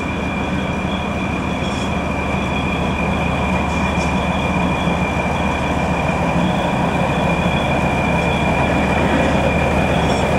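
Steel wheels squeal and roll on the rails.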